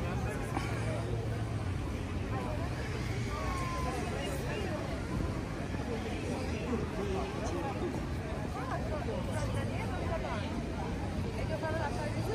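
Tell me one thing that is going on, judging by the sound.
A crowd of people chatters outdoors in an open square.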